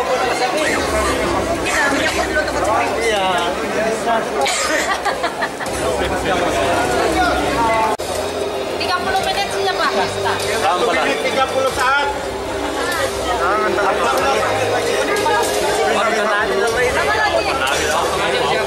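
A crowd of men and women talk and shout excitedly all around, close by.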